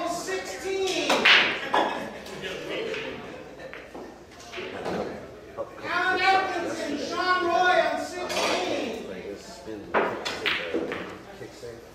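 Pool balls clack together sharply on a table.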